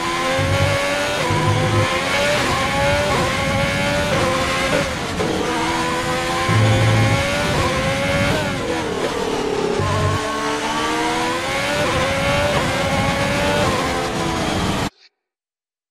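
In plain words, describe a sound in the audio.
A racing car engine roars at high revs, rising and falling through gear changes.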